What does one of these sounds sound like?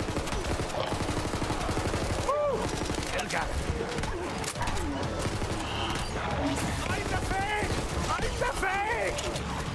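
Rapid gunfire rattles and bangs.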